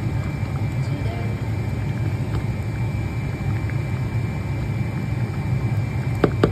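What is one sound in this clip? A pot of soup bubbles as it boils.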